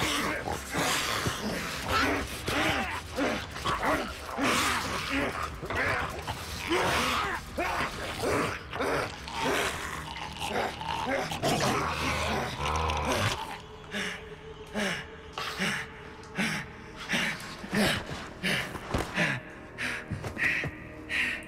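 Men grunt and breathe heavily close by.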